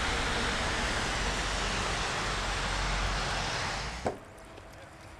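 Wind blows hard outdoors with a steady roar.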